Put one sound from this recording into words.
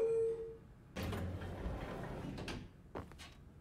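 An elevator door slides open.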